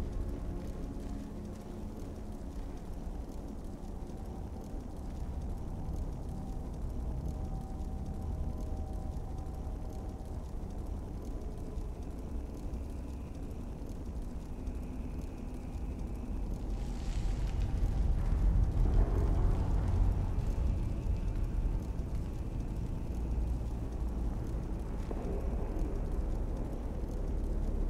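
Magic flames hiss and crackle steadily in a low, droning hum.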